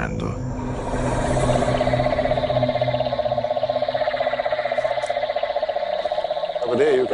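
A toad trills steadily up close.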